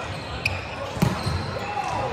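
A volleyball is struck with a thump.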